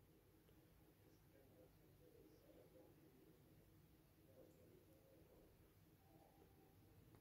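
A television plays a channel's sound quietly through its speakers.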